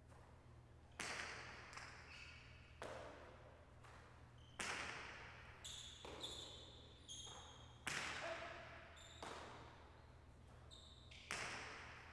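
A hard ball smacks against a wall, echoing loudly in a large hall.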